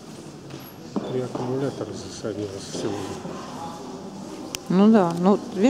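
A young woman talks to a dog in a bright, coaxing voice.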